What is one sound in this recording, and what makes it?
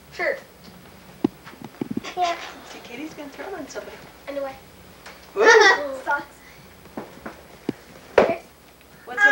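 Children talk and call out excitedly nearby.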